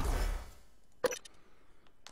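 A menu button clicks once.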